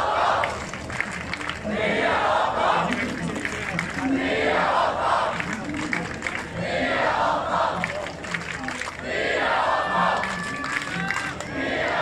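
A large crowd outdoors sings together in loud, swelling waves.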